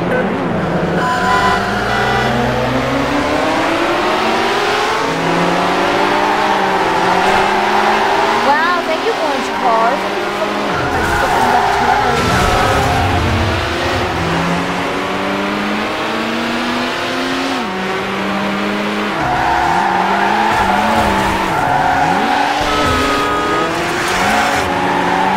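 Tyres screech as a racing car slides through turns.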